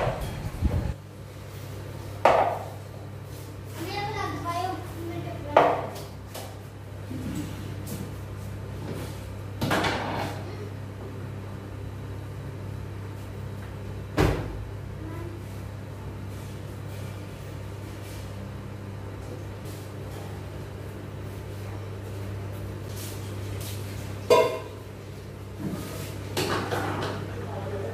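Dishes and metal pots clink and clatter on a counter.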